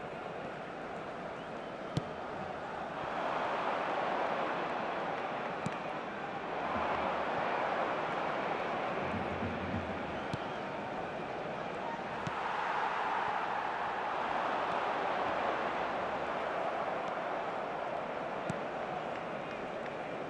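A stadium crowd roars, swelling and fading in waves.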